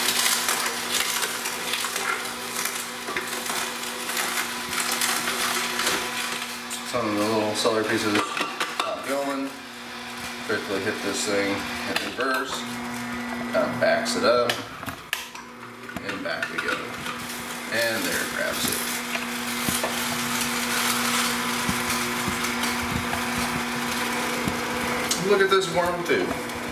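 A juicer motor hums steadily.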